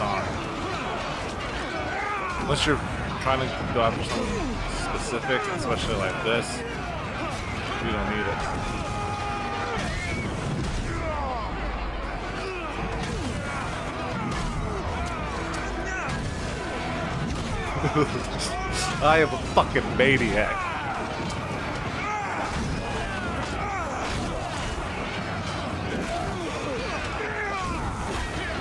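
Swords and shields clash and clang in a fierce melee.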